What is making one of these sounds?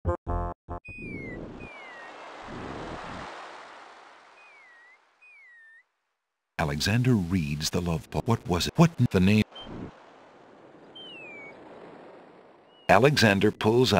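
Small waves wash gently onto a shore.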